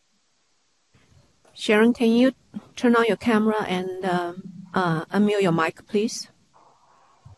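A person speaks calmly over an online call.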